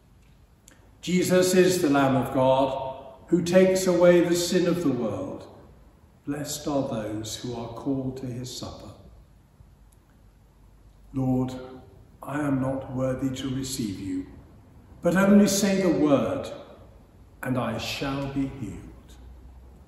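An elderly man speaks calmly and slowly nearby.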